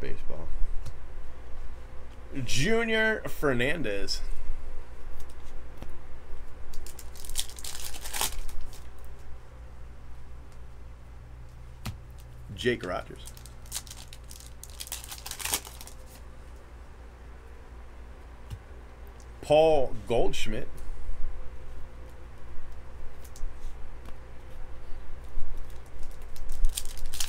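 Trading cards slide and shuffle against each other.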